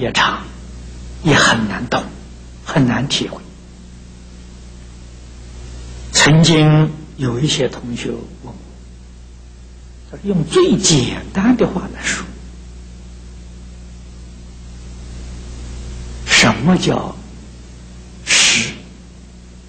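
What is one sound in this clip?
An elderly man speaks calmly into a microphone, with long pauses between phrases.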